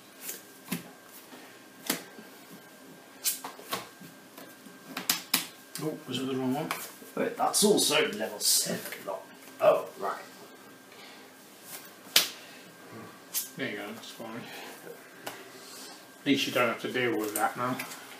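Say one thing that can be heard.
Cards riffle and flick in a hand.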